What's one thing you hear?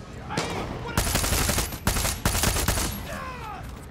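A gun fires rapid bursts of loud shots.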